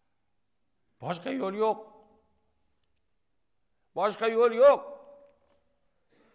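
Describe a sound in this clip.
A middle-aged man speaks with feeling into a microphone, in short phrases with pauses, his voice echoing in a large hall.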